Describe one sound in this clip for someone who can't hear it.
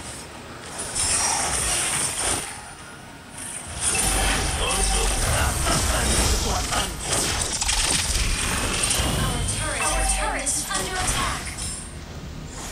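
Video game spell effects whoosh and crackle in a busy fight.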